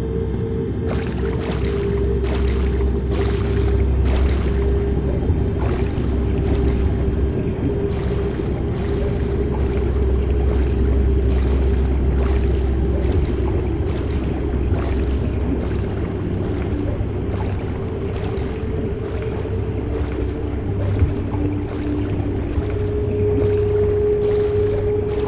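Swimming strokes splash softly at an even pace.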